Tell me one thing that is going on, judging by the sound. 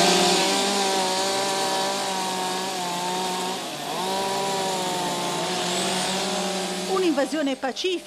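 A chainsaw engine drones steadily nearby.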